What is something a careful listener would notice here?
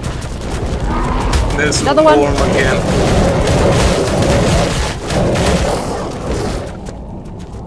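Large beasts snarl and thrash in a fight.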